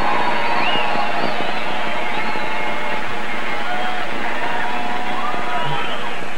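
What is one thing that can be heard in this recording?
A large crowd roars and cheers outdoors.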